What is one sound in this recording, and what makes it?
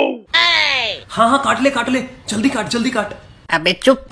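A young man talks loudly and with animation close by.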